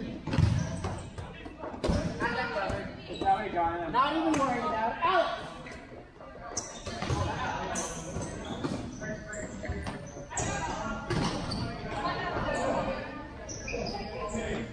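Young players shout and call out to each other in an echoing hall.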